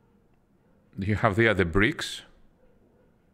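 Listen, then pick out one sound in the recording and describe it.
A man speaks briefly and close to a microphone.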